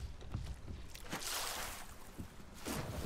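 Water splashes loudly.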